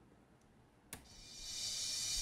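A bright hissing sound sample starts playing and grows louder.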